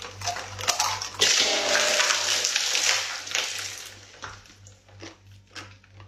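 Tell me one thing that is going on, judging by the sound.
Plastic crinkles loudly as it is crumpled.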